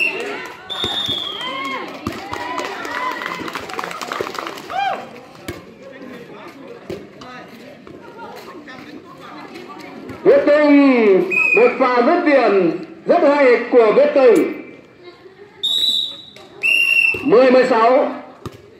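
A volleyball is struck with a dull slap.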